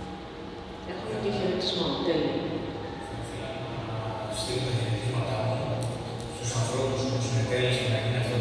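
A man speaks over loudspeakers.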